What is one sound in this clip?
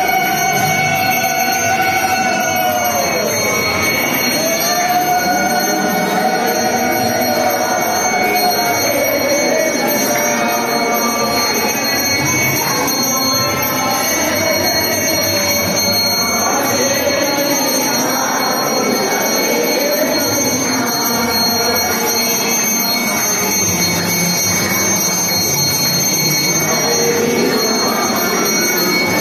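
A group of men sings together in a steady chant.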